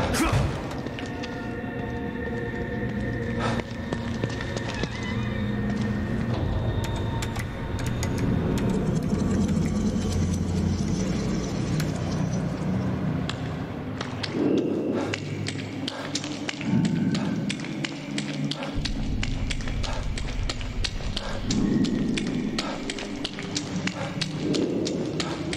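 Footsteps fall steadily on a hard floor.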